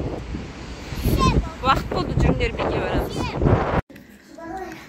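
A young child talks with animation close by.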